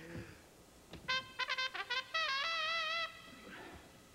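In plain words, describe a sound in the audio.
A trumpet plays a short, bright fanfare.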